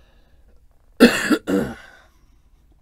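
A man groans loudly.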